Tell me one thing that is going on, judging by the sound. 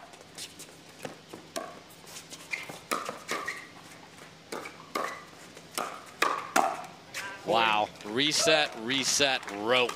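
Paddles pop against a plastic ball in a quick rally.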